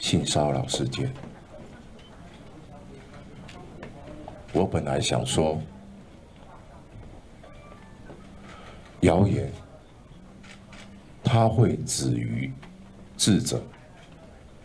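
A man speaks into a microphone in short, halting phrases with long pauses.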